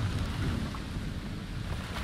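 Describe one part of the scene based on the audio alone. Waves crash against a ship's hull.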